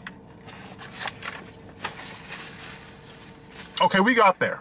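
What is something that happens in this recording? Paper wrapping rustles.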